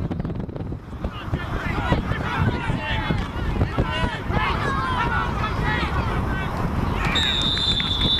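Spectators on the sideline shout and cheer from a distance.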